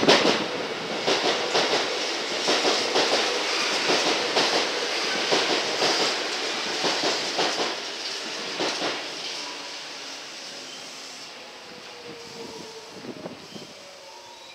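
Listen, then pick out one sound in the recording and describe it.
A train rumbles in, wheels clacking over rail joints as it slows down.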